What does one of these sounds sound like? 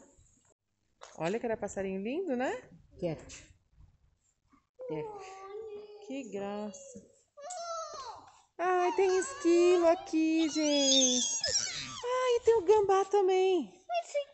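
A young boy talks with animation close by.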